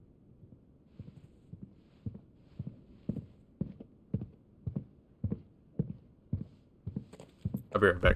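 Footsteps thud at an even pace on a hard floor.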